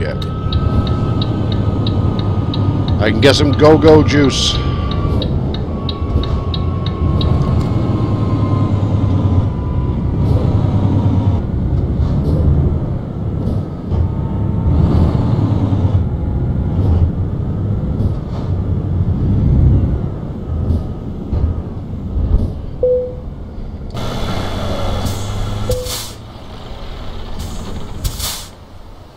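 A truck engine hums with a low, steady rumble.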